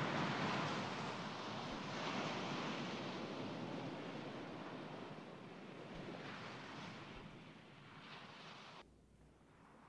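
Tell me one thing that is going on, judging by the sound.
A swimmer splashes through choppy water.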